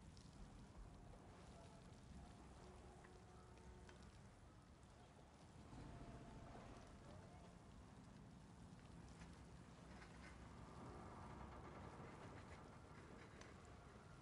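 Wind rumbles low and steadily outdoors.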